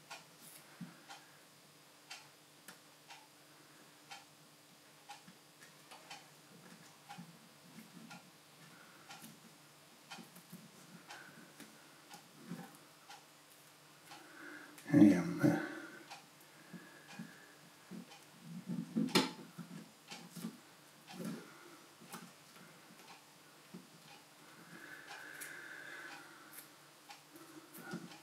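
Small plastic and metal parts click and tap as fingers fit them together.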